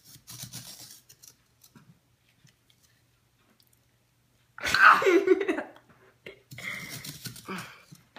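A knife scrapes against a hard ball.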